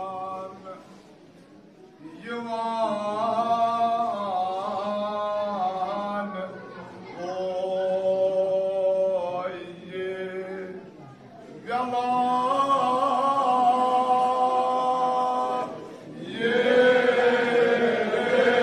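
A man chants loudly and mournfully through a loudspeaker in an echoing hall.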